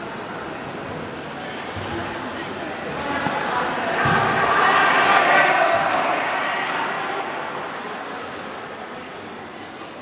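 A large crowd cheers and shouts loudly in a large echoing hall, rising and then fading.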